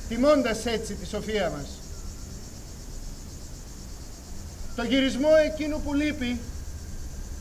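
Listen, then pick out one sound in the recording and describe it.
A man sings loudly in a strong voice.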